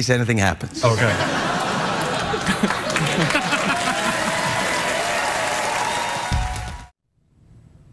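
An audience laughs and cheers loudly.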